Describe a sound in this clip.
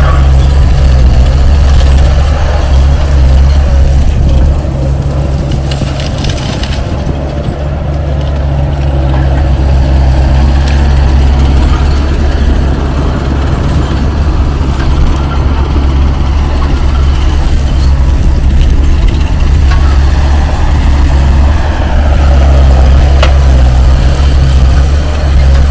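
A loader's diesel engine roars nearby.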